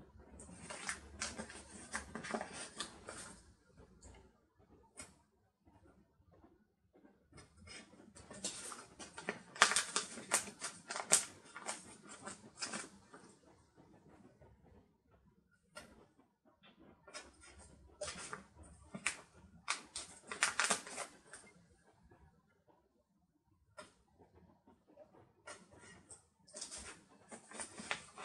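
Sticker sheets rustle and crinkle as they are handled close by.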